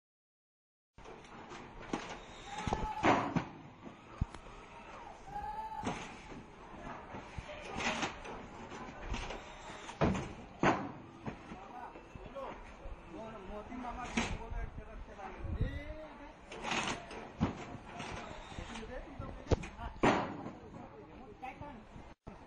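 Boxes thump as they are set down and slid across a metal table.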